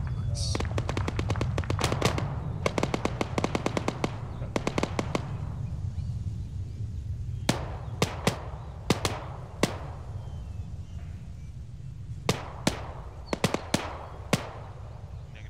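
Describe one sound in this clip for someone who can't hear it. Guns fire in rapid bursts of sharp cracks.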